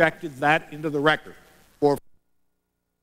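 A middle-aged man speaks forcefully into a microphone.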